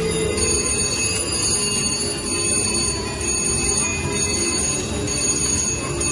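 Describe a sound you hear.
Slot machine reels spin with a whirring clatter and stop.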